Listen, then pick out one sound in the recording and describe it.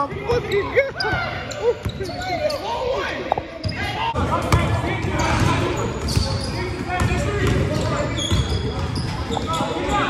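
A basketball bounces on a gym floor, echoing in a large hall.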